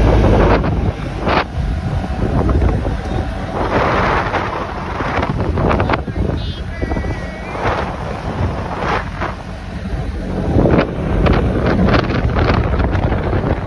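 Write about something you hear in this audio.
Wheels roll with a steady rumble over asphalt.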